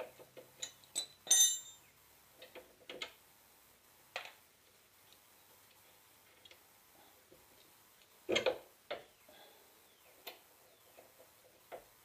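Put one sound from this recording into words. Metal tools clink against a wheel hub.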